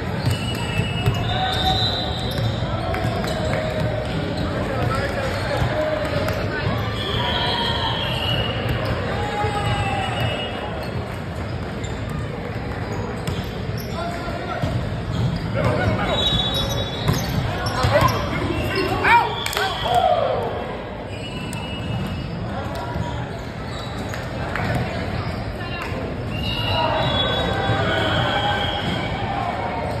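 Players and onlookers chatter and call out across a large echoing gym.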